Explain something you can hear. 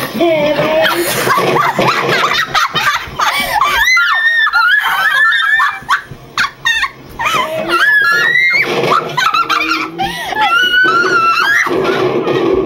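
Several young women laugh loudly and shriek together.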